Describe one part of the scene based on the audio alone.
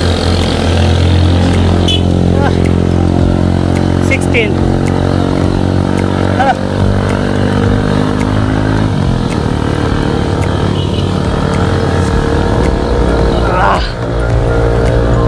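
Wind rushes past as the motorcycle moves.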